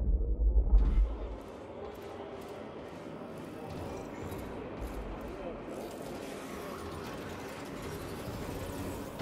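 Footsteps walk over a metal walkway.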